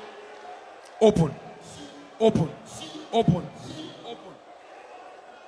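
A man speaks forcefully through a microphone in a large echoing hall.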